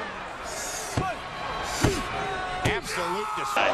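A referee slaps the canvas mat several times.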